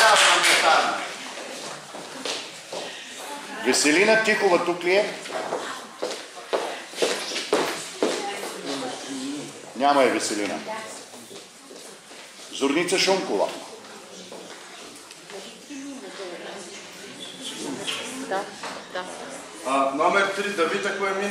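People chatter and children call out in an echoing hall.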